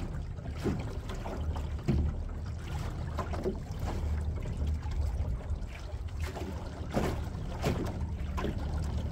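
Small waves lap and slap against a boat's hull.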